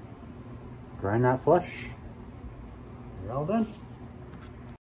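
A man talks quietly close by.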